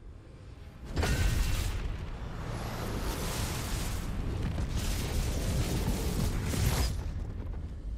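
Electricity crackles and roars loudly.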